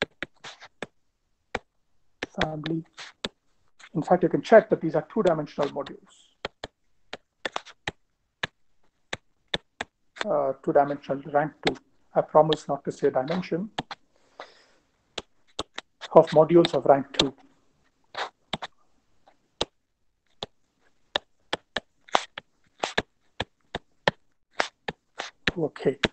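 A stylus taps and clicks on a tablet.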